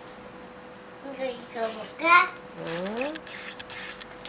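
A young boy talks playfully close by.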